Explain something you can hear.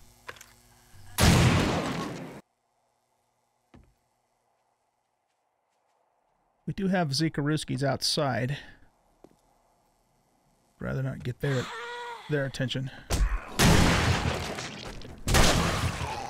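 A shotgun fires with a loud boom.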